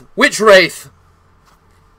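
A young man shouts loudly into a close microphone.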